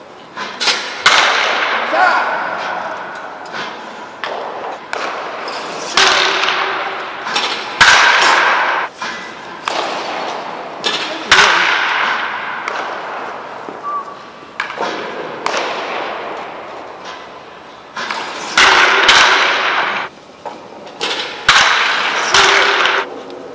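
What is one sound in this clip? A bat cracks sharply against a baseball again and again.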